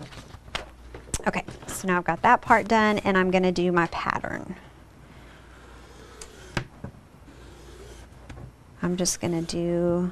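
Paper rustles and slides on a table.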